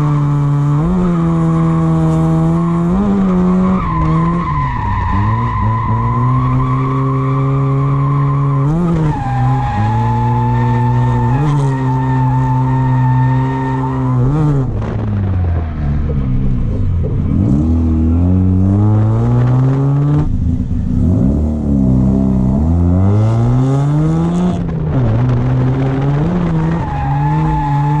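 Tyres squeal on the pavement as a car slides.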